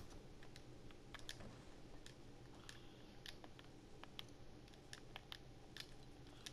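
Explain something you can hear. Footsteps patter quickly on soft ground.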